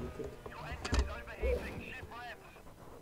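A racing car crashes into a barrier with a thud.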